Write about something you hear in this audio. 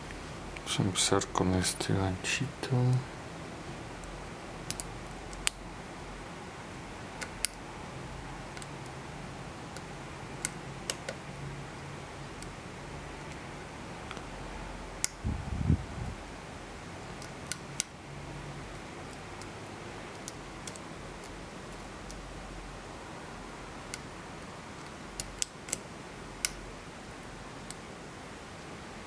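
Metal lock picks click and scrape faintly inside a lock.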